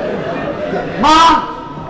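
A woman shouts out sharply.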